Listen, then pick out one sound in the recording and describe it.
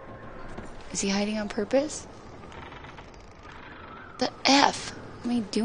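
A young woman speaks with animation into a nearby microphone.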